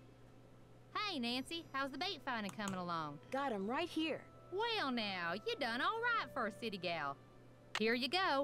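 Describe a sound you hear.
A young woman speaks cheerfully and clearly.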